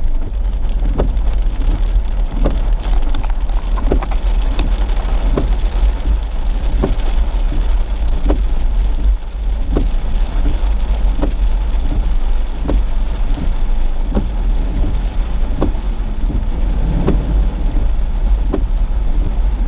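Windshield wipers thump back and forth at a steady pace.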